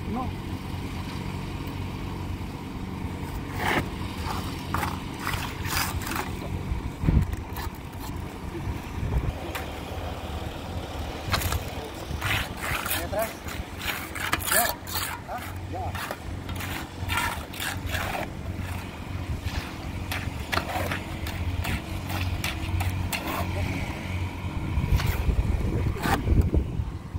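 A trowel scrapes wet concrete.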